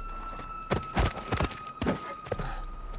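Heavy punches thud in a brief fight.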